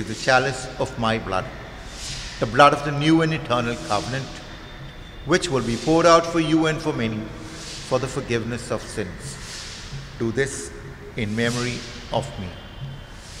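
An elderly man speaks calmly and solemnly into a microphone in a reverberant hall.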